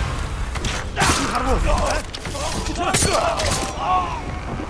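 Swords clash and slash in a quick fight.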